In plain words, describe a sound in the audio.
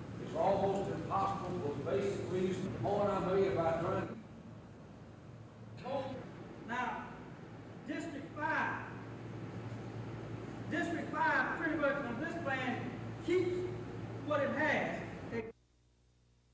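A man speaks to a group in a large echoing hall.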